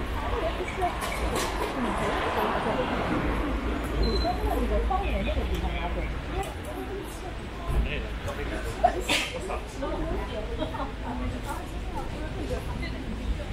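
Young women chat with each other nearby as they walk.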